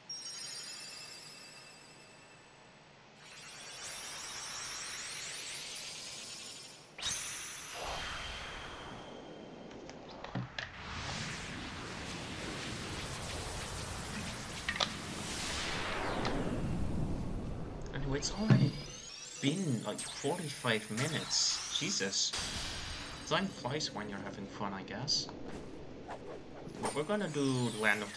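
Magical chimes shimmer and sparkle.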